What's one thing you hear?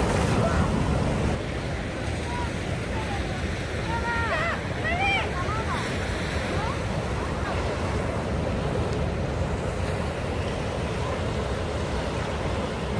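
Waves wash and break steadily on a shore outdoors.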